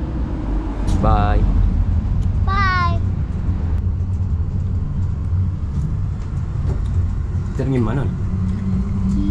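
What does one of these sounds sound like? A young child speaks in a high voice, close by.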